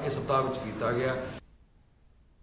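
A man speaks into a microphone close by.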